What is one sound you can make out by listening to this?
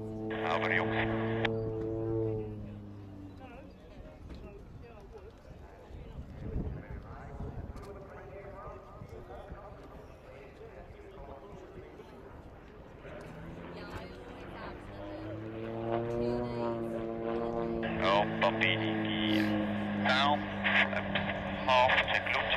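A propeller plane's engine drones overhead, rising and falling in pitch as it loops and dives.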